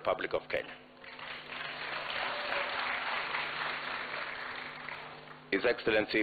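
A crowd cheers and applauds.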